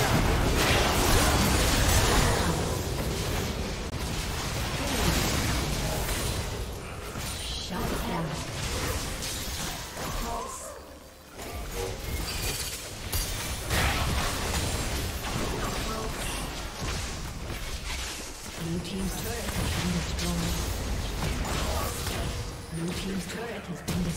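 Game spell effects whoosh, crackle and explode in quick bursts.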